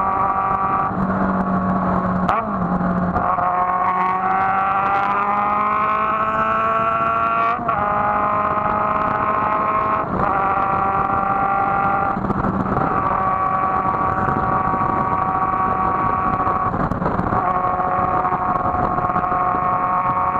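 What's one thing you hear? A motorcycle engine hums steadily up close, rising in pitch as it speeds up and dropping at each gear change.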